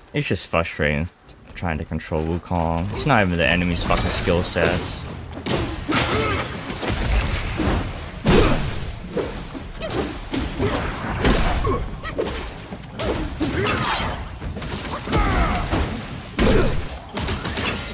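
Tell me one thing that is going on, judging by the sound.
Water splashes under running feet.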